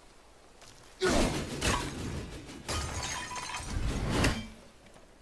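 A heavy axe whooshes through the air in quick swings.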